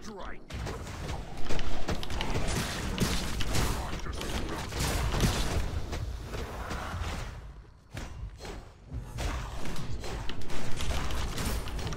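Game weapons clash and thud in a fight.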